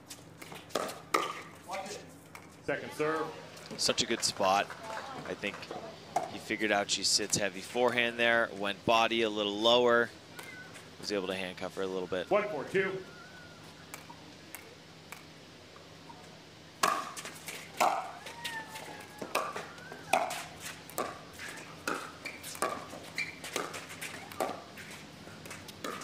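Paddles strike a plastic ball with sharp, hollow pops in a quick back-and-forth rally.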